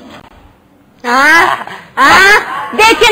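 A woman cries out in a high, excited voice close by.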